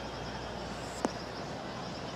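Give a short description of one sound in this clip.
A golf ball lands with a soft thud on turf.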